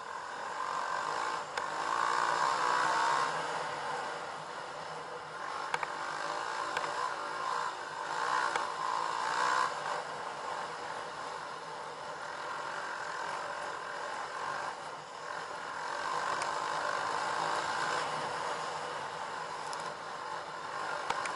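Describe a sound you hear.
A dirt bike engine buzzes loudly up close, rising and falling as the rider speeds up and slows.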